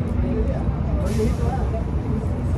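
Air hisses briefly from a bicycle tyre valve.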